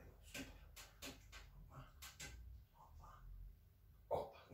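Soft clicks and taps come as hands work on a body.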